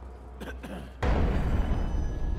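A loud rushing whoosh bursts out and roars on.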